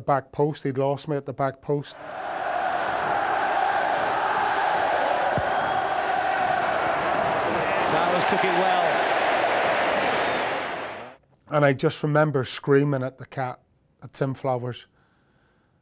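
A man speaks intently, close up.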